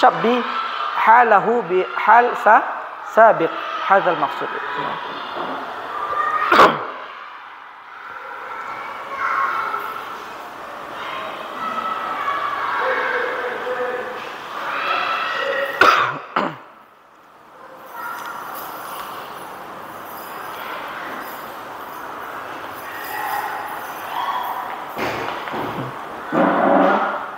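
A man speaks with animation into a clip-on microphone, lecturing in an echoing room.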